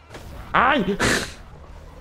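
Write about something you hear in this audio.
An electric crackle zaps sharply.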